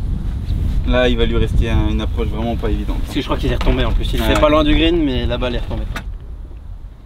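Men talk casually close by.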